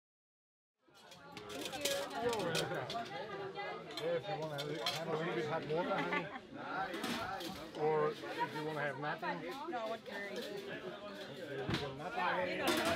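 Men and women chat casually nearby.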